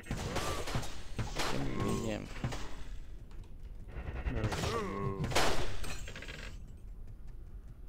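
Magic blasts crackle and burst during a fight.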